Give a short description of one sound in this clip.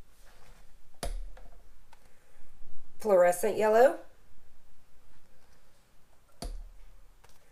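A paint tube is set down on a hard surface with a soft knock.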